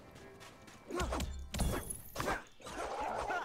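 Weapon blows strike a creature with sharp, quick impacts.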